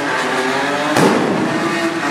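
A firework bangs sharply.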